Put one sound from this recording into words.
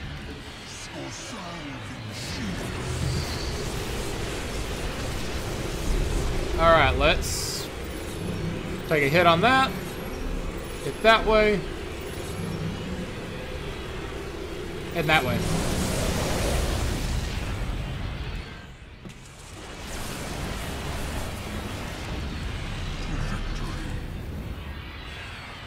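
Laser weapons fire and buzz in a busy battle.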